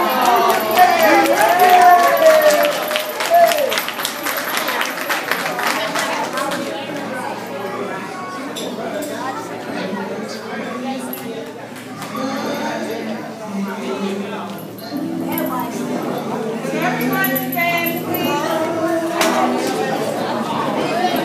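A crowd of adults and children chatters in a large echoing hall.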